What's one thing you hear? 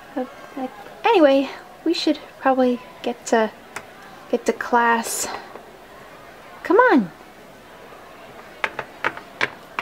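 A small plastic toy taps lightly on a hard surface.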